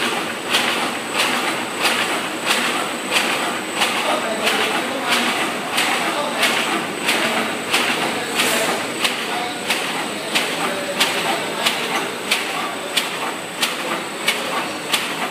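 A machine clacks in a fast, even rhythm.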